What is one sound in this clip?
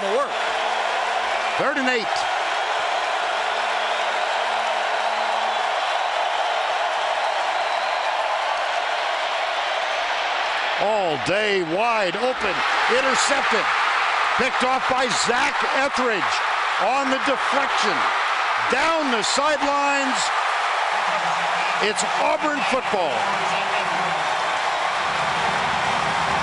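A large stadium crowd roars and cheers outdoors.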